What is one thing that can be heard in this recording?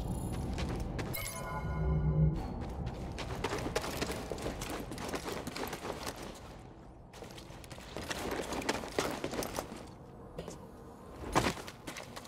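Footsteps run over loose gravel.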